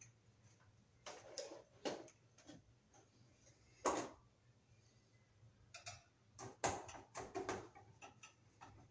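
Hand tools knock and scrape against a metal fixture.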